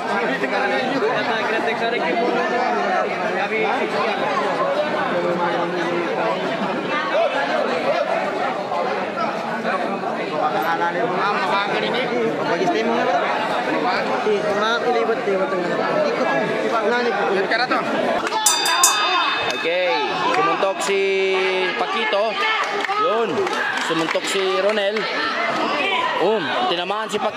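A large crowd chatters and shouts loudly all around.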